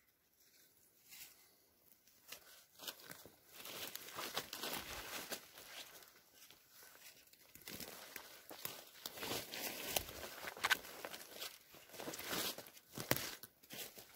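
Footsteps crunch and rustle through leafy undergrowth close by.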